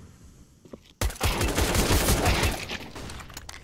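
Pistol shots fire in a quick, loud burst.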